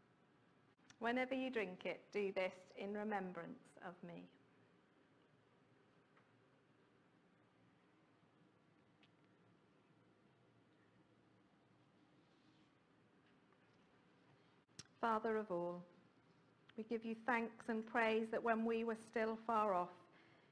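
A middle-aged woman speaks calmly into a clip-on microphone.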